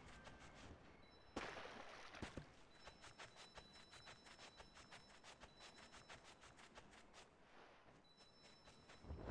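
Soft sparkling chimes ring as glowing lights are gathered.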